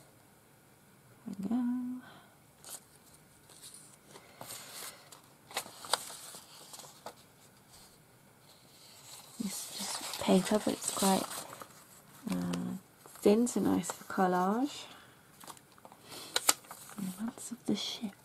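Paper rustles and crinkles as it is handled close by.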